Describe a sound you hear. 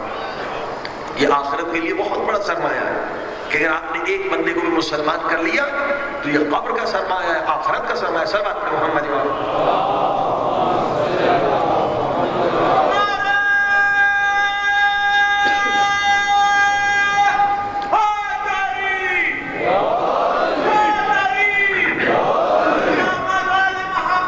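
A middle-aged man speaks with feeling into a microphone, heard through a loudspeaker in an echoing hall.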